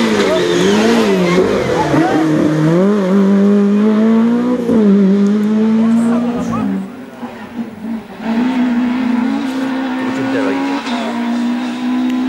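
A rally car engine revs hard through gear changes.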